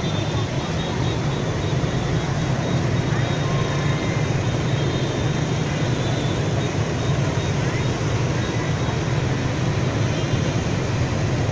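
Dense traffic of motorbikes and cars rumbles steadily along a busy road.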